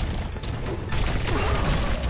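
Twin pistols fire in rapid bursts.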